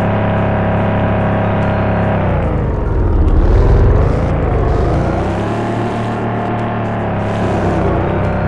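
A video game off-road vehicle's engine drones and revs, its pitch dipping and rising.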